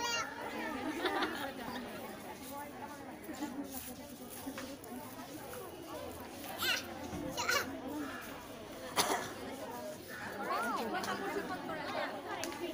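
A crowd of girls chatters and calls out all around, outdoors.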